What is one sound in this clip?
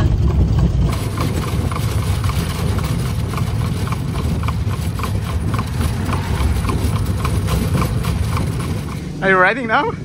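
Horse hooves clop steadily on pavement.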